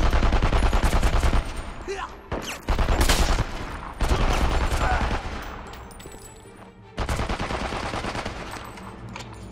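A heavy machine gun fires in loud, rapid bursts.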